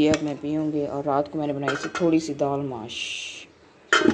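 A metal lid is lifted off a pan.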